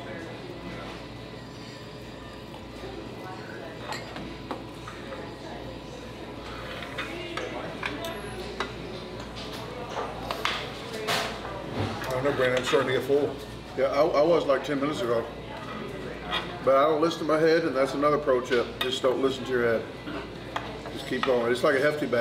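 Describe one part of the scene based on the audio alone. Cutlery clinks and scrapes on plates.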